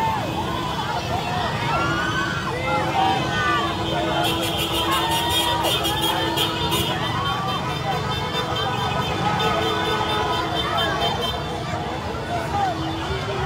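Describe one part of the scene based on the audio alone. A large crowd outdoors cheers and shouts loudly.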